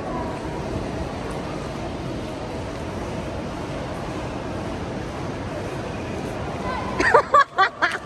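A crowd murmurs indistinctly in a large echoing hall.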